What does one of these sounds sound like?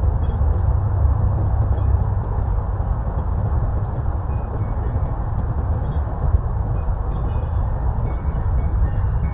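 Wind gusts steadily outdoors, rumbling against the microphone.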